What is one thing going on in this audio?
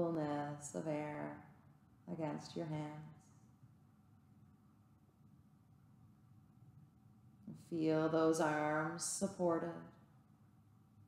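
A woman speaks slowly and calmly, close by.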